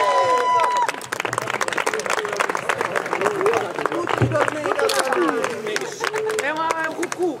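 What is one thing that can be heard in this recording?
A small crowd claps in applause outdoors.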